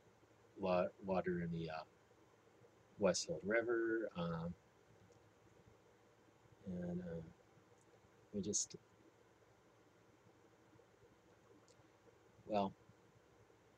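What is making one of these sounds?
An older man speaks calmly in short phrases close to the microphone, with pauses in between.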